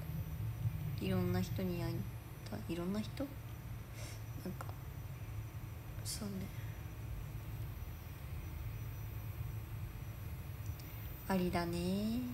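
A young woman speaks softly and close by, in short phrases.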